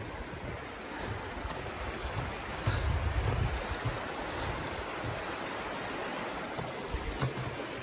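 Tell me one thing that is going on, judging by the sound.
A shallow creek babbles and rushes steadily over stones.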